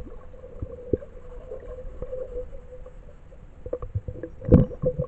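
A low, murky rumble of water fills the background.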